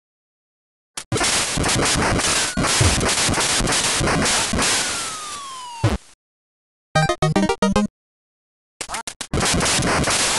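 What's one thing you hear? A loud electronic shot blasts.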